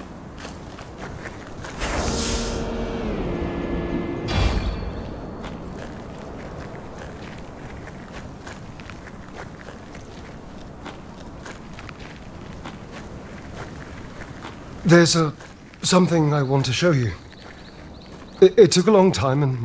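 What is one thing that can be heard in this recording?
Footsteps crunch on dry dirt.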